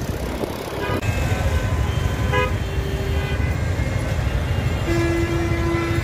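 A busy street crowd murmurs.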